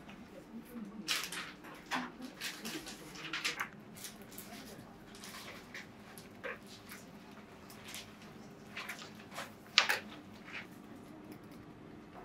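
Small paper pieces rustle and tap on a table.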